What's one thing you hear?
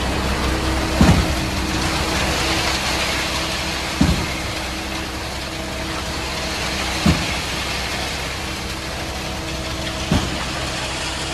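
A concrete pump thumps heavily about every three seconds.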